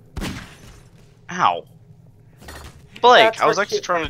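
A revolver fires a single loud shot.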